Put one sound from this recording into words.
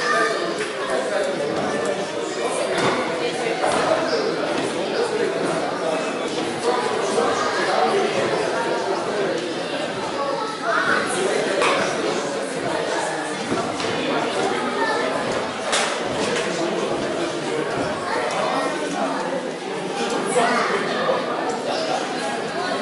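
A crowd of spectators chatters in an echoing hall.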